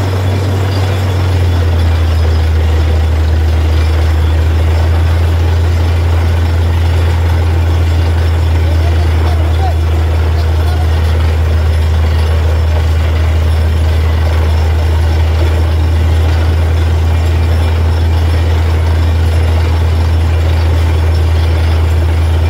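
A drilling rig's engine rumbles loudly and steadily.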